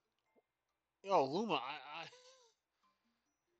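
A man speaks briefly in a drawn-out, sing-song voice through a microphone.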